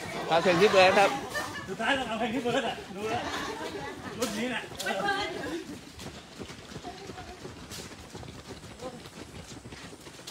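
Footsteps of a group of runners patter on pavement.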